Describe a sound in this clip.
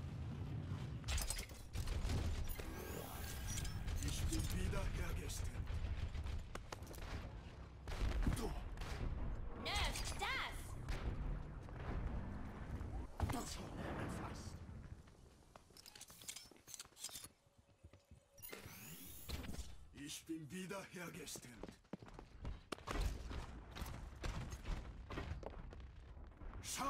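Throwing stars whoosh out in quick bursts.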